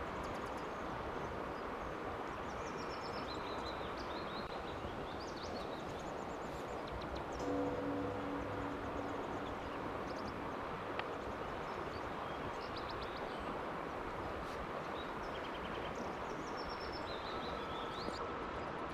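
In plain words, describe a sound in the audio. A river flows and ripples steadily over stones outdoors.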